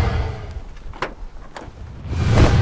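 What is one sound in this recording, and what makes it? A car door handle clicks and the door unlatches.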